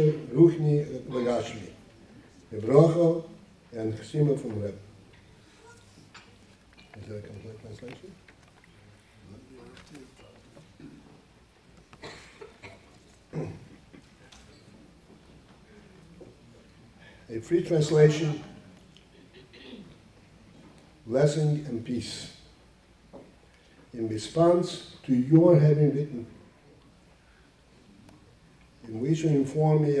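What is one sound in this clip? An elderly man reads out slowly into a microphone, with long pauses.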